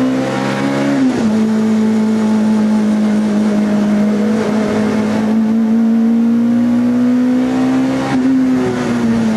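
A race car engine drops in pitch as gears shift.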